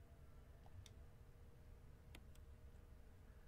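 Short electronic clicks sound a few times.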